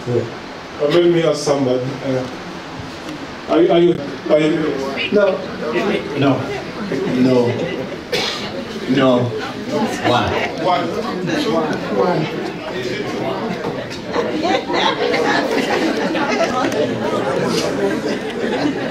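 A man speaks with animation into a microphone in a large room.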